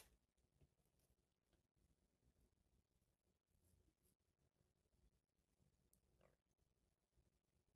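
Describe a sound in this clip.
Fingers rustle softly through hair.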